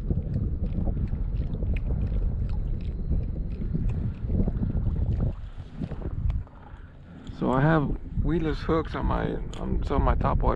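Wind blows steadily over open water.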